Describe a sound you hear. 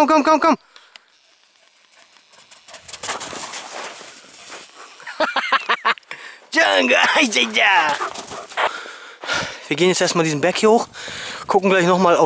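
A dog's paws patter and crunch on snow nearby.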